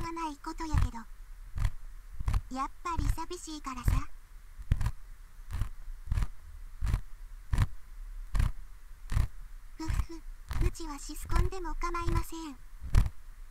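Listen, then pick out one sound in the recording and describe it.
A young woman speaks softly and cheerfully through a microphone.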